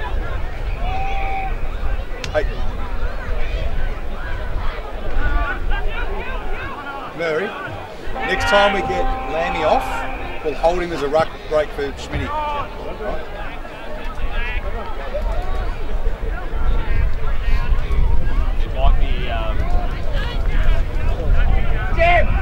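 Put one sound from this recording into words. Players shout and call out to each other across an open field.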